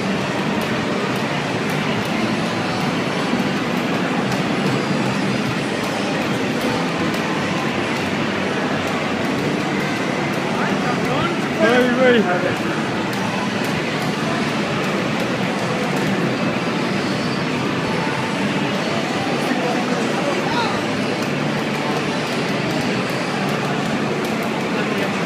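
A fighting video game's music and hit effects play through a television's speakers.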